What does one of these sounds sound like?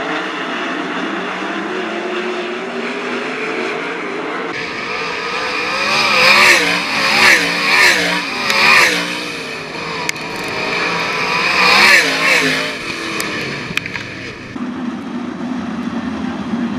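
A racing car engine roars and revs.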